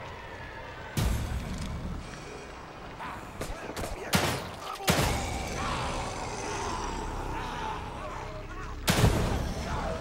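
Pistol shots ring out.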